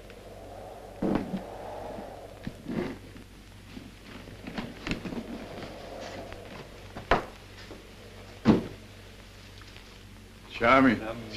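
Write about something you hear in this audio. Paper rustles and crinkles as a package is unwrapped.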